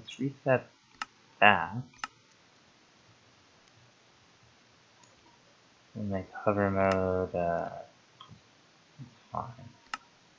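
Game menu buttons click sharply a few times.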